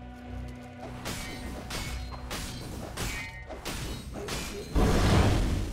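Game sound effects of clashing blows and spells ring out.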